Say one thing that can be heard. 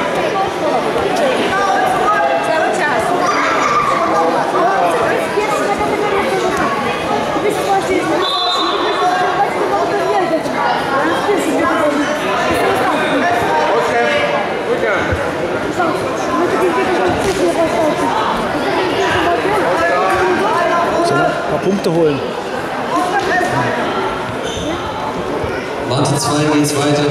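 A crowd of people shouts and calls out continuously, echoing in a large hall.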